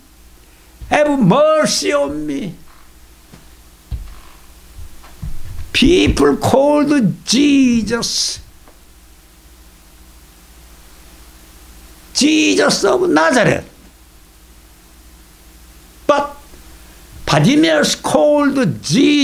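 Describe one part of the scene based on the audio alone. An elderly man speaks dramatically into a microphone, in bursts with pauses.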